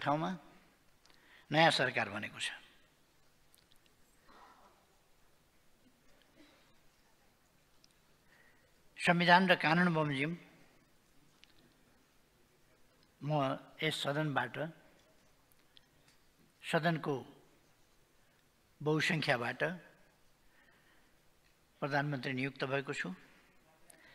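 An elderly man speaks slowly into a microphone, in short bursts with long pauses.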